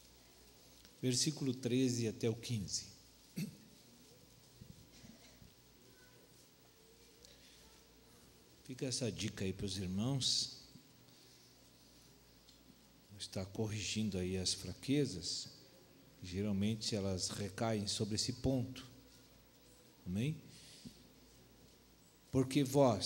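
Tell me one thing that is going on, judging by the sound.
A middle-aged man speaks calmly into a handheld microphone, in bursts with pauses.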